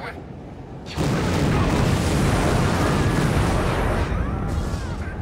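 A rushing blast of wind roars.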